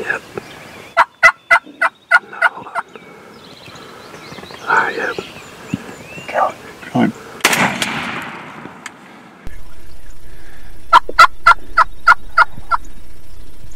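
A turkey hen yelps in a quick series of sharp calls.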